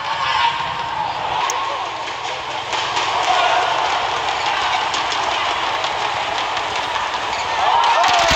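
A large crowd murmurs in an echoing hall.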